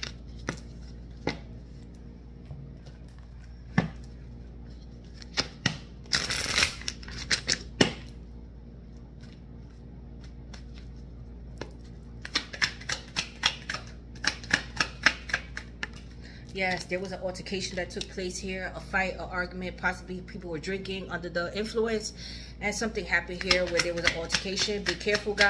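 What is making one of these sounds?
Playing cards are shuffled with quick riffling clicks.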